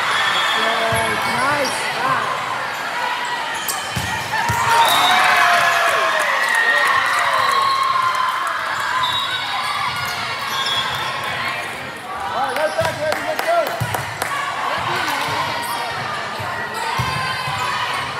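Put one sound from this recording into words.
A volleyball is struck with sharp smacks in a large echoing gym.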